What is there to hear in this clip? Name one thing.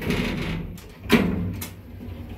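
A finger presses an elevator button with a click.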